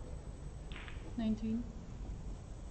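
A snooker ball knocks softly as it is set down on the table.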